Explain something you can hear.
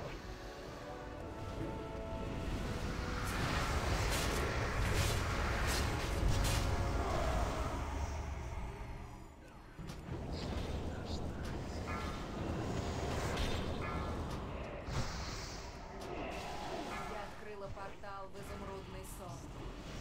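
Game spells whoosh and crackle in a loud battle.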